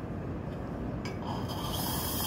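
A lever on an espresso machine clicks.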